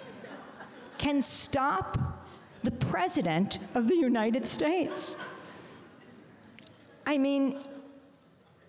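A middle-aged woman speaks with animation into a microphone, heard through a loudspeaker in an echoing hall.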